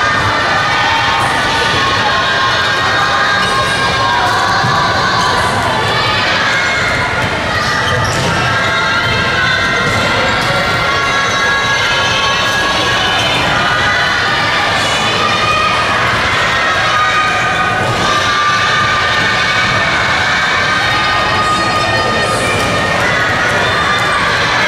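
Many young voices chatter and call out in a large echoing hall.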